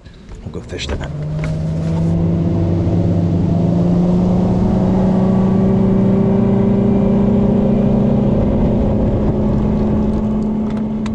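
A boat's outboard motor starts up and hums steadily, slowly rising in pitch.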